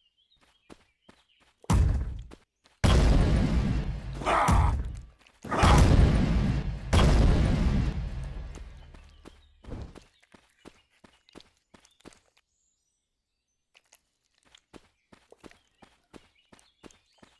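Footsteps patter quickly.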